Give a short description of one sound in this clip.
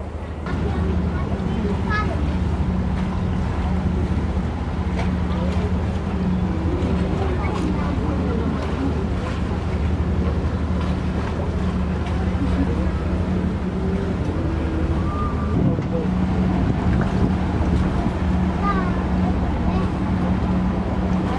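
Water splashes and churns against a boat's hull.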